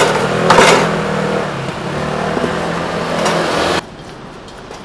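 A metal machine lever clanks and rattles.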